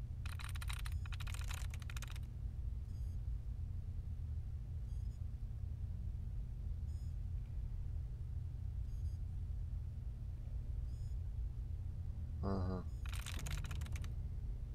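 A computer terminal chatters with rapid electronic clicks.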